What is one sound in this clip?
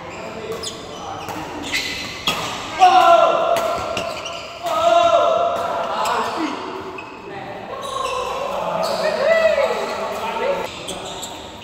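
A shuttlecock is struck sharply with rackets again and again in an echoing hall.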